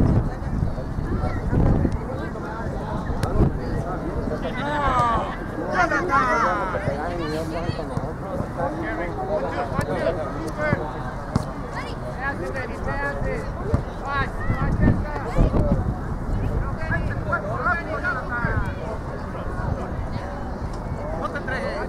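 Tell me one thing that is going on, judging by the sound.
Spectators call out and cheer from the sidelines of an outdoor field.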